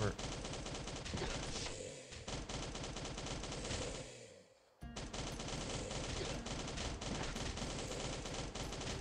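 Rapid gunshots fire again and again.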